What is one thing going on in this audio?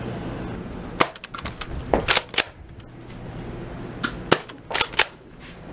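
Plastic clicks and knocks close by as a hand handles a small device.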